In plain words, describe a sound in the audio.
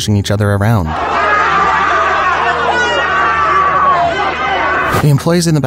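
A large crowd shouts and cheers excitedly.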